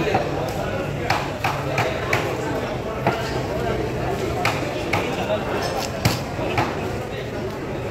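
A knife taps and knocks against a table.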